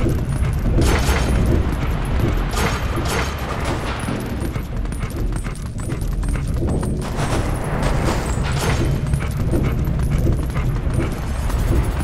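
Paws patter quickly on a stone floor.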